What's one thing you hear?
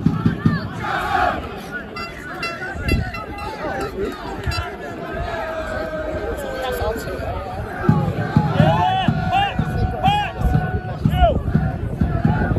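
A crowd of spectators murmurs and chants outdoors.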